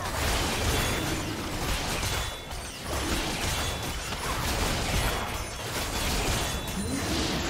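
Game characters strike a large dragon with loud impacts.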